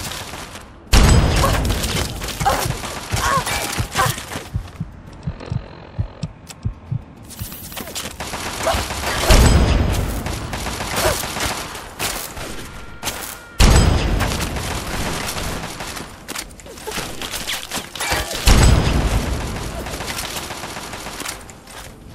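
A rifle fires loud, booming shots that echo away.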